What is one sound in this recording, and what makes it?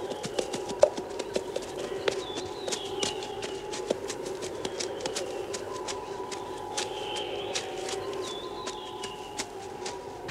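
Footsteps run over dry leaves.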